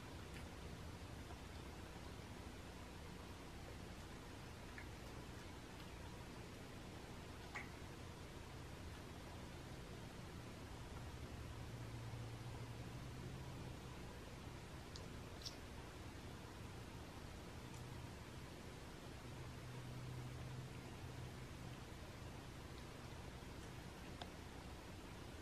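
A cat chews food with soft, wet smacking sounds close by.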